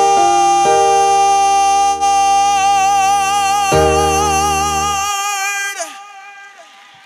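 A young man sings loudly and passionately into a microphone.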